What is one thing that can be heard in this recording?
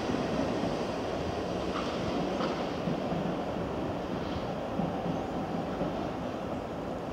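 An electric train rumbles slowly along the rails, drawing nearer.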